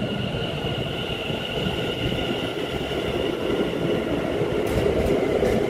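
An electric train rumbles and whines along the tracks close by.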